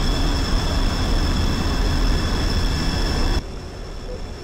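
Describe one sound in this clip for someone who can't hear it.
A jet engine roars steadily with a high whine.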